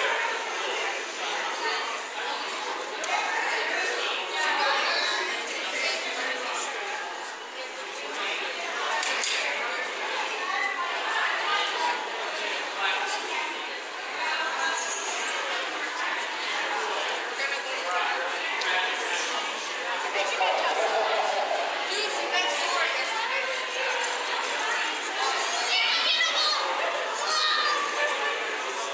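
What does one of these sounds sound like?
A crowd of people chatter all around in a large echoing hall.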